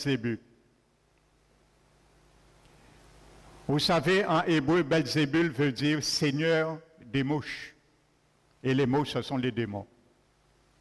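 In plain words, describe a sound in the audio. A man speaks calmly through a microphone in a room with some echo.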